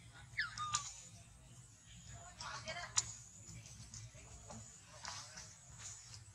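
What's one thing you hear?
A monkey shifts on a branch, rustling the leaves.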